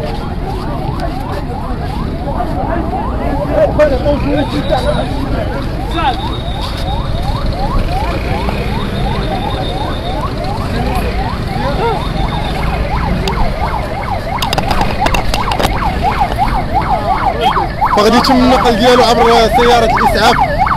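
A siren wails rapidly and steadily nearby.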